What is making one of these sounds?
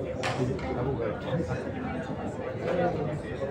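Pool balls clack together on a table.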